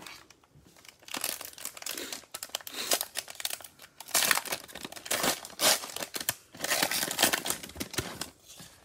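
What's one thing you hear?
A foil wrapper crinkles loudly as it is handled and torn open.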